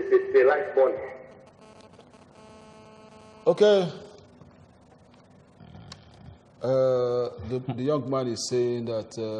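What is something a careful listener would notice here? An elderly man speaks with animation into a microphone, pausing now and then.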